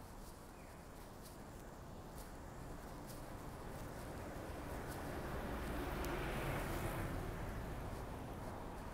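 A bus engine rumbles nearby.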